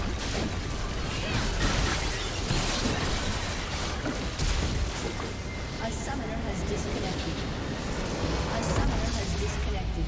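Spell effects and weapon hits clash and crackle in a dense battle.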